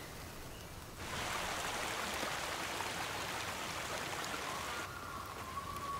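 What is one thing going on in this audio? A stream of water flows and splashes steadily.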